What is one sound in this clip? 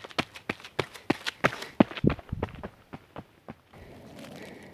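Running footsteps thud on a dirt trail.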